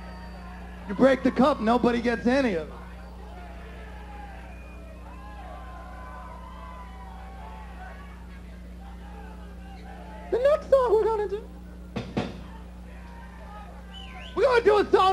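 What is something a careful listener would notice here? A man shouts into a microphone.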